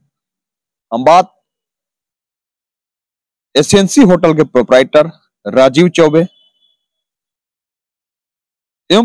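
A man speaks clearly and steadily into a close microphone, in short bursts with pauses.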